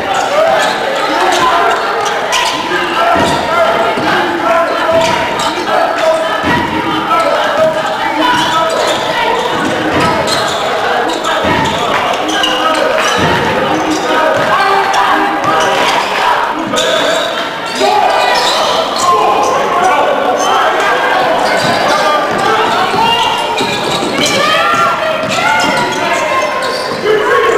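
A small crowd murmurs in a large echoing gym.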